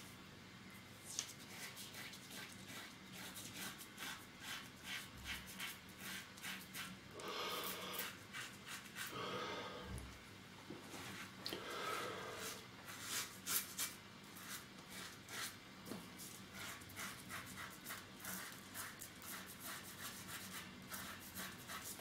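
A razor scrapes rapidly across stubble, close up.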